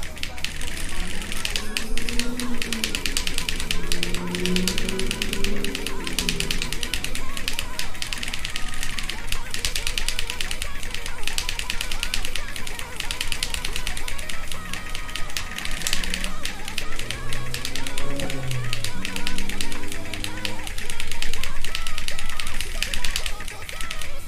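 Keyboard keys clatter rapidly and constantly close by.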